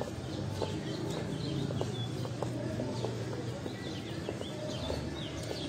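Footsteps tap steadily on a paved path.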